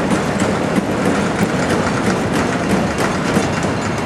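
A wooden roller coaster train rumbles along its track.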